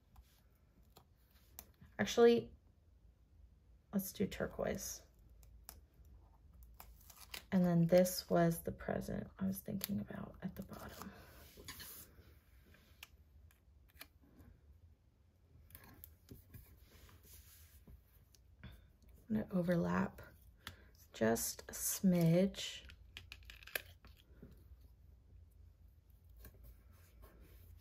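Sticker paper rustles and crinkles softly close by.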